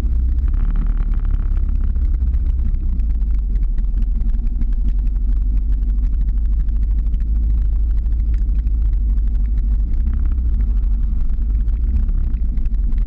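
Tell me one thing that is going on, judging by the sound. Wind rumbles and buffets loudly against the microphone.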